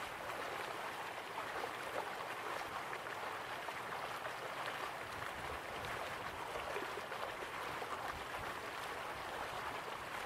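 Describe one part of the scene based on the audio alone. Water splashes steadily into a pool from a small waterfall.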